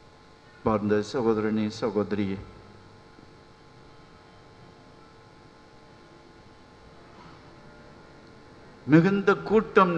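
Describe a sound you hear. An elderly man chants in a sustained, singing voice through a microphone in an echoing hall.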